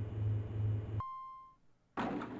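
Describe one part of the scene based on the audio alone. An elevator chime dings once.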